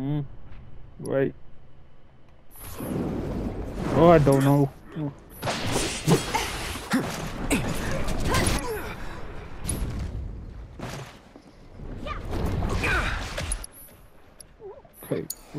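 Swords clash and slash with sharp metallic hits.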